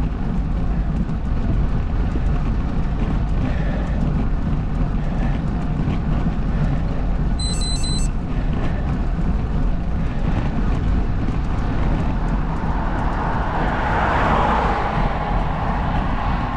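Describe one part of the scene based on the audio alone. Wind rumbles steadily outdoors.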